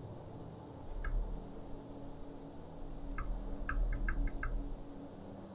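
Soft menu clicks sound several times.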